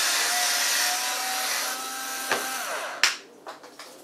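An electric corkscrew motor whirs steadily, then stops.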